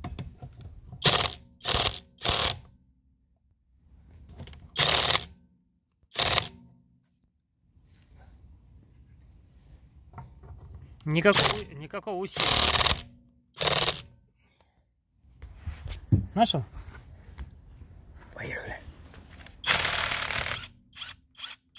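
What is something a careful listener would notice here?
An impact wrench hammers in short, loud bursts.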